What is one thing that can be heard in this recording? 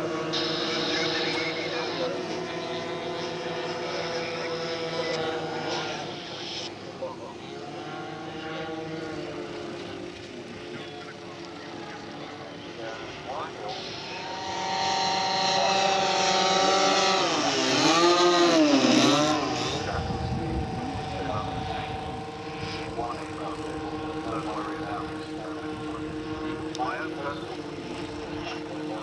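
Model plane engines drone steadily overhead.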